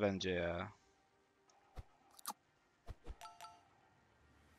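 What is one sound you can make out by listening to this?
A video game plays short chiming effects.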